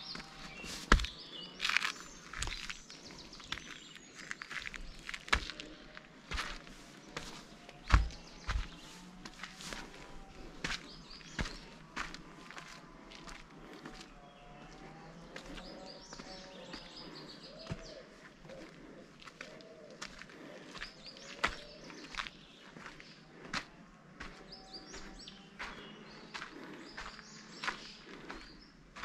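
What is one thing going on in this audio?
Footsteps crunch steadily on a dirt and rock trail.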